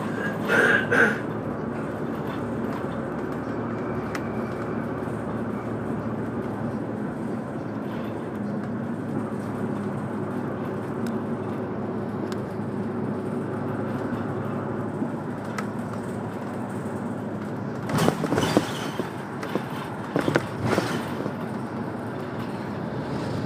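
A vehicle engine hums steadily from inside while driving.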